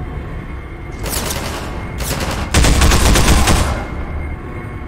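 A gun fires in short, loud bursts.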